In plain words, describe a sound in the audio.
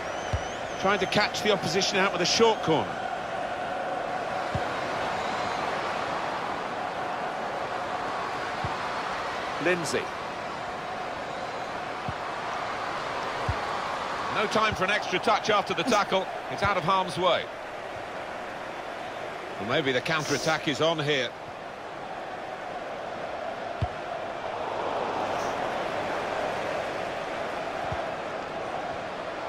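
A large stadium crowd murmurs and cheers steadily.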